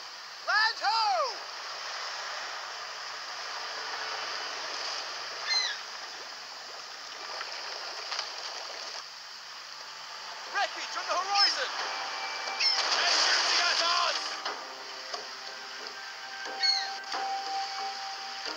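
Water rushes and splashes along a sailing ship's hull.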